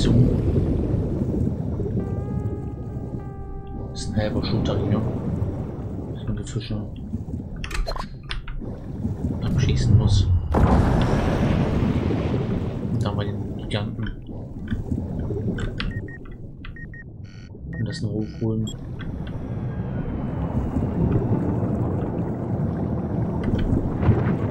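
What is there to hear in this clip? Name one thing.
Low underwater rumbling murmurs steadily throughout.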